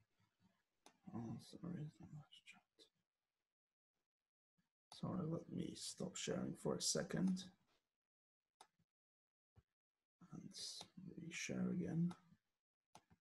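A man speaks calmly through an online call microphone, pausing between phrases.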